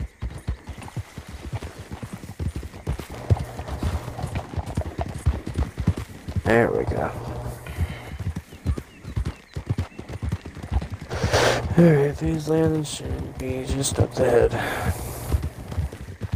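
Horse hooves thud steadily on a dirt path.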